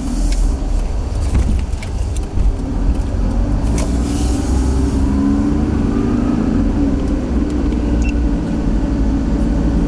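Tyres roll over a wet road, heard from inside a car.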